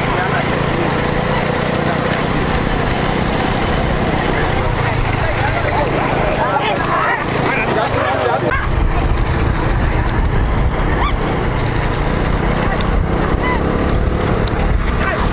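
Cart wheels rumble and clatter over a paved road.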